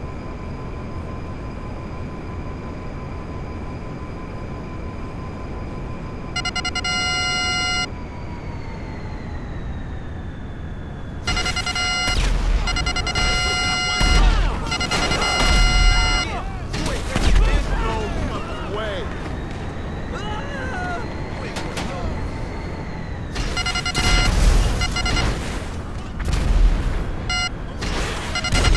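A hovering car's engine hums.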